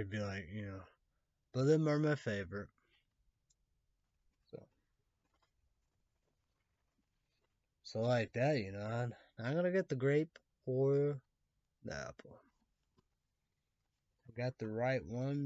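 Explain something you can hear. A young man speaks casually close to a microphone, in short bursts with pauses.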